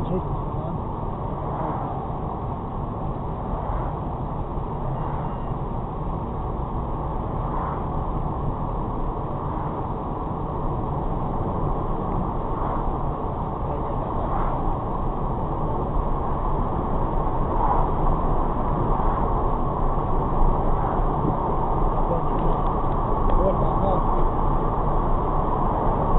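A car's engine hums steadily from inside the cabin.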